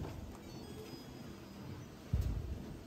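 A control button beeps as it is pressed.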